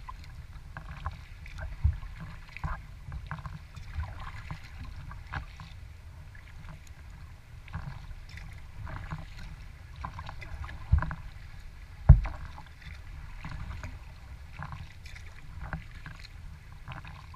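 Water splashes and laps against a kayak's hull.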